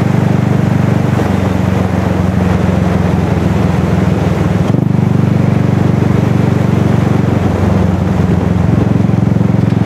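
Tyres roll on asphalt with a steady rush.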